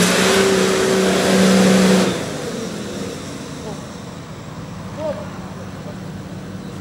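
An engine roars loudly, then drops to a low idle.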